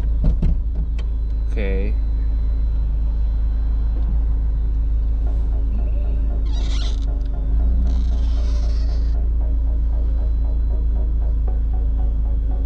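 A car engine idles with a low steady rumble.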